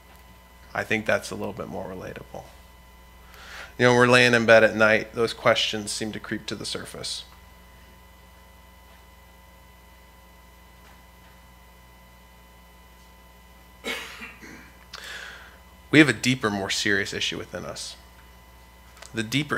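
A young man speaks calmly into a microphone, with pauses.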